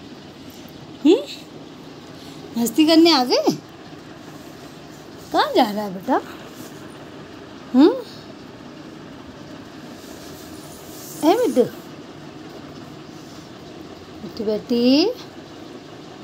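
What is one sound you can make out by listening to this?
A parrot gives short, rising squawks close by, now and then.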